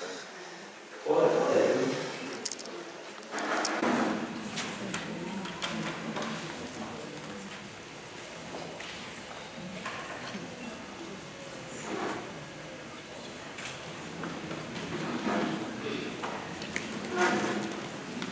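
A man reads out aloud in a calm, steady voice.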